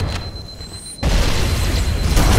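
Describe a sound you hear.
An explosion booms with a crackling burst.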